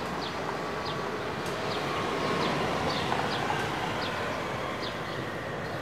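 A car engine hums as a car rolls slowly forward.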